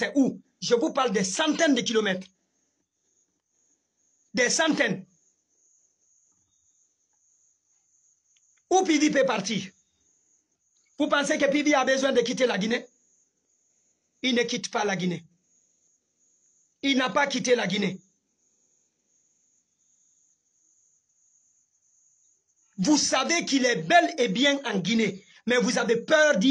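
A young man speaks with animation close to the microphone, in short bursts with long pauses.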